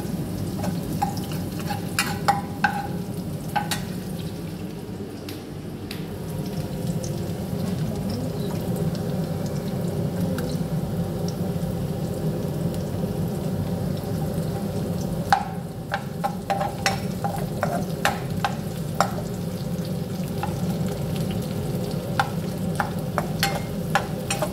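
Onions sizzle steadily in a frying pan.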